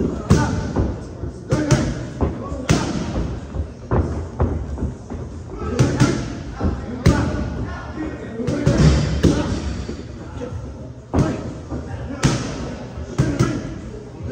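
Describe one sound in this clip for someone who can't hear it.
Gloved punches and kicks smack sharply against pads, again and again.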